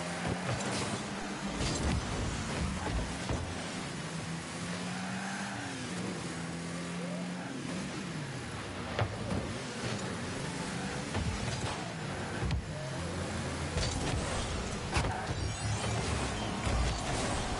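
A car engine hums and whines steadily, rising and falling in pitch.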